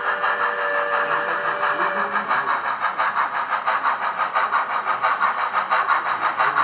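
Model train wheels click along the rails.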